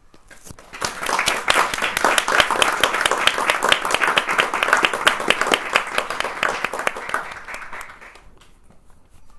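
An audience applauds with lively clapping in a room.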